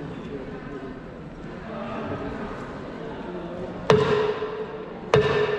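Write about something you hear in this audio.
A long-necked lute is plucked softly.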